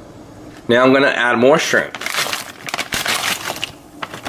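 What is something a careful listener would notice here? Dry seasoning pours and rattles into the pot of water.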